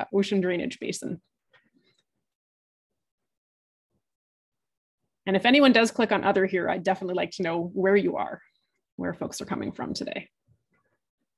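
A young woman speaks calmly through an online call microphone.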